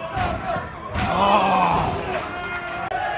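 A crowd roars briefly during a goalmouth scramble.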